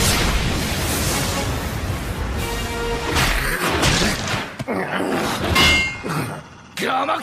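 Heavy blows and thuds crash during a fight.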